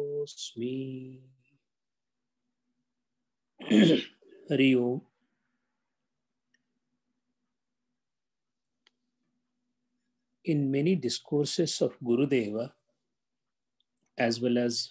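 An elderly man speaks calmly through an online call, with long pauses.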